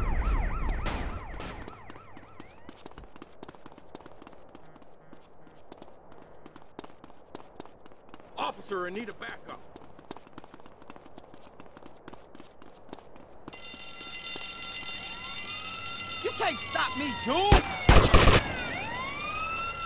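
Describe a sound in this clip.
Footsteps slap quickly on hard ground as a man runs.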